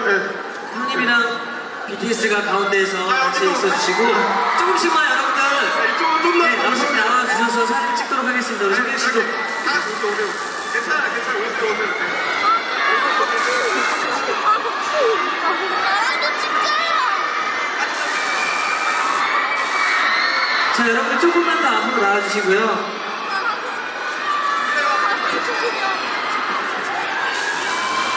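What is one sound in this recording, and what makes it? A large crowd of young women and men chatters and shouts loudly all around.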